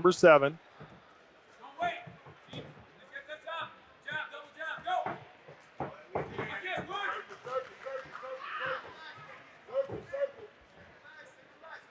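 Boxing gloves thud against bodies in quick punches.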